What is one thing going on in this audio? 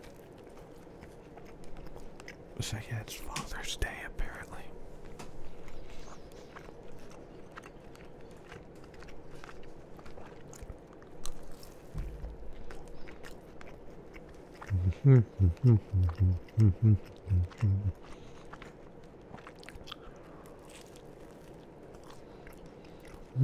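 A man chews food wetly and closely into a microphone.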